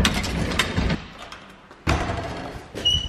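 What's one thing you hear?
A metal gate latch rattles and clanks.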